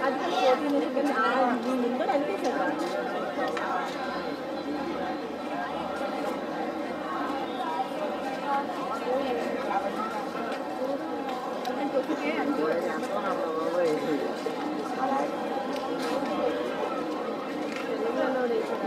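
Several young men talk and chatter outdoors.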